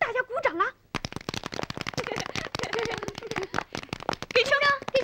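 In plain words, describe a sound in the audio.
Children clap their hands rapidly.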